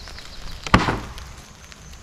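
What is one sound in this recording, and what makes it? A wooden board thuds as it is set down.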